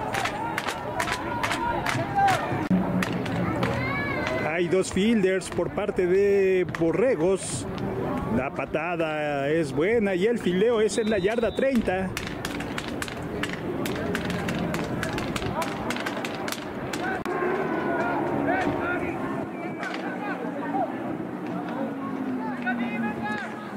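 A crowd of players and spectators shouts and cheers outdoors.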